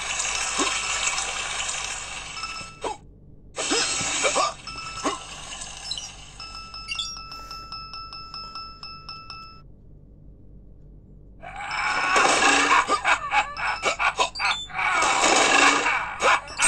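Electronic game sounds and jingles play from a phone speaker.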